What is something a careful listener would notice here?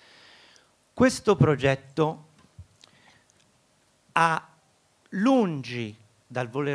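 A middle-aged man speaks with animation into a microphone, in short bursts.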